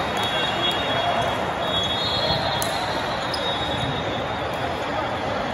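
Many voices chatter and echo through a large hall.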